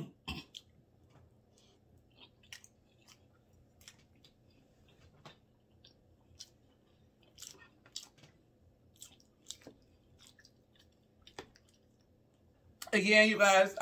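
A woman chews food close to a microphone with soft, wet mouth sounds.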